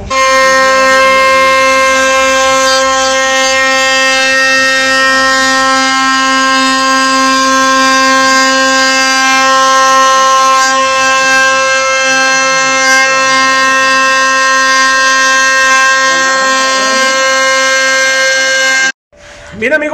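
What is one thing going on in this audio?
A power router whines loudly as it cuts along the edge of a wooden board.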